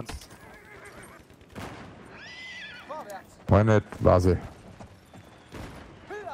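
A horse's hooves thud on dry ground at a gallop.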